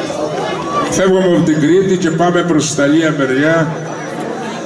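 A man sings into a microphone with a strong voice.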